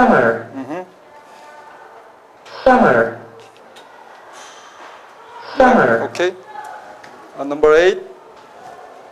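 A man speaks slowly in short phrases through a microphone and loudspeaker, in a room with some echo.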